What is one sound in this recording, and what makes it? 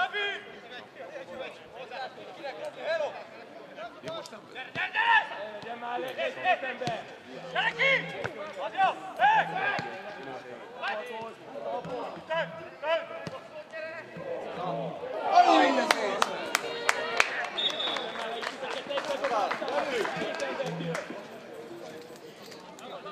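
Men on a football pitch shout to each other across open air.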